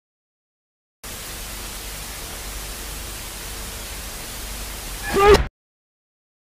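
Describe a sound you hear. Television static hisses loudly and evenly.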